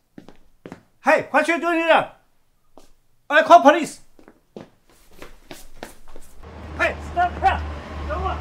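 A middle-aged man shouts angrily.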